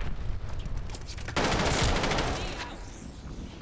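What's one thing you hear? Rapid gunfire rattles loudly from a video game.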